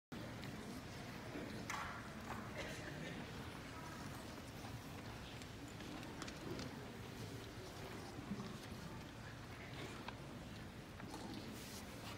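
A children's choir sings in a large, echoing hall.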